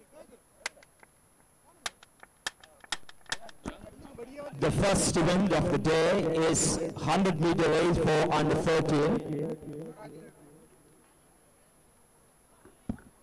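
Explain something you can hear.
Flags flap and snap in the wind.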